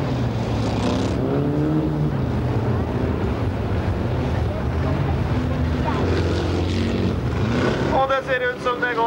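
A car engine revs hard as it races past.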